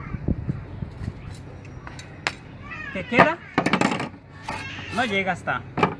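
Metal tools knock and clatter on a wooden bench.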